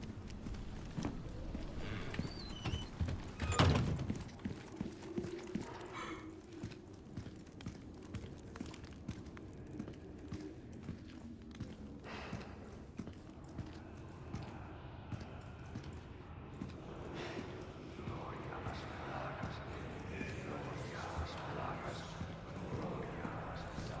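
Footsteps thud on stairs and stone floors.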